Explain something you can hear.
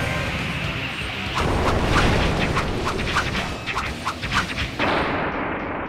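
Electricity crackles and zaps loudly.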